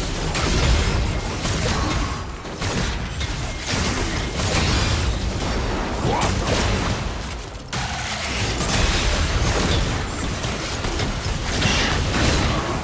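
Spell effects blast and crackle in a busy fight.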